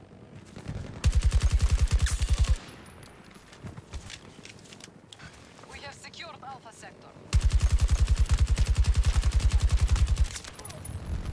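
A rifle fires rapid automatic bursts up close.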